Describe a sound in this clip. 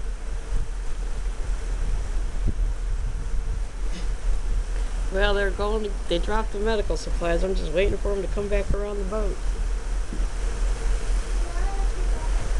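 Wind buffets the microphone on an open deck at sea.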